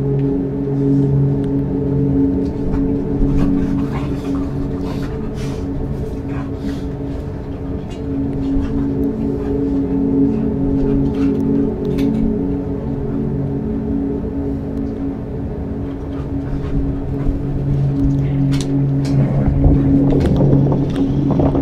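A small submarine's engine hums steadily underwater.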